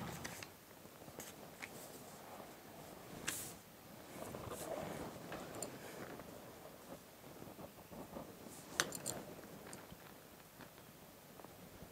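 A pencil scratches lines on paper.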